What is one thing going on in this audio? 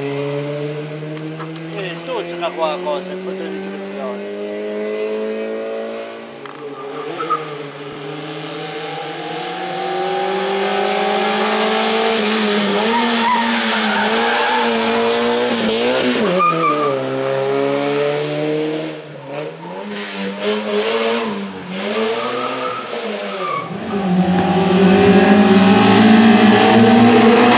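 A rally car engine revs hard, its pitch dropping and climbing as it roars past.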